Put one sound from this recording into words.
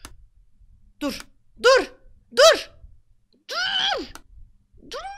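A young woman exclaims excitedly, close to a microphone.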